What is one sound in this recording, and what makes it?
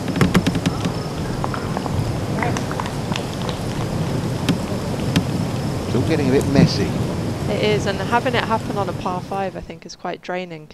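A distant crowd applauds outdoors.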